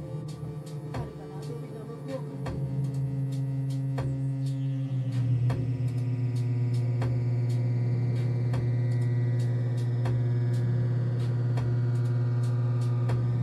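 A keyboard plays a low, steady droning tone, growing louder.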